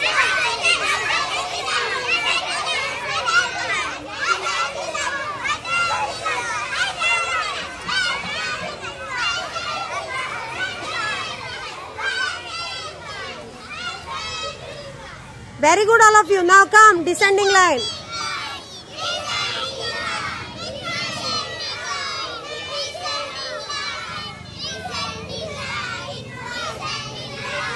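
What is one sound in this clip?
Young children chatter and call out together outdoors.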